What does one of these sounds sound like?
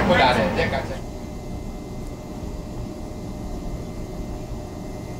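A diesel locomotive engine rumbles low and steady.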